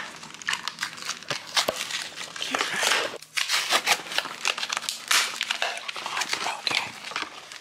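A cardboard box rustles and crinkles as it is handled.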